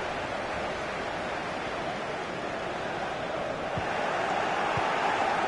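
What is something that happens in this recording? A large stadium crowd roars steadily, swelling louder toward the end.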